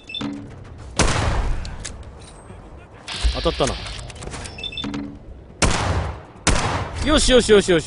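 Rifle shots ring out loudly with a short echo.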